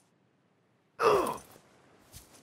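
A heavy thud sounds as something hits the ground hard.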